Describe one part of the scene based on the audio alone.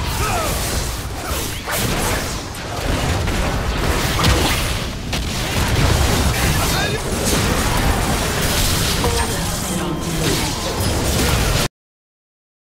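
Magic spells blast and crackle in a fast fantasy battle.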